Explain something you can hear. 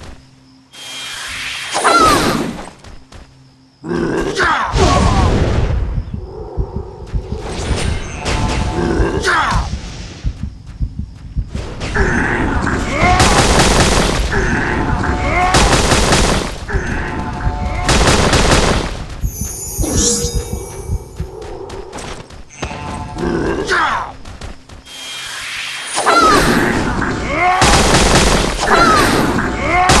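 Magic blasts whoosh and roar in bursts.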